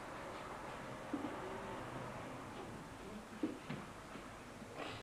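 Children murmur quietly in a room.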